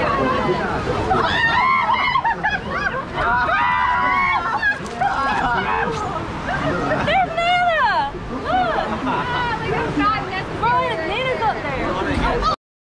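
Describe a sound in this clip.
A young woman shouts and laughs excitedly close by.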